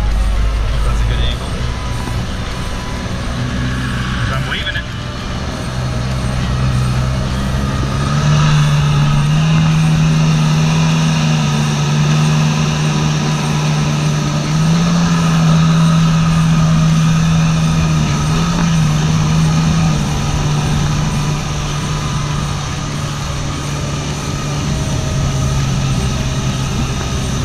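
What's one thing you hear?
A jet ski engine drones loudly, rising and falling in pitch as it speeds up and slows.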